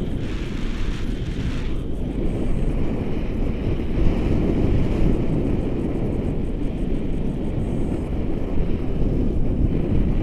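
Strong wind rushes and buffets loudly against the microphone.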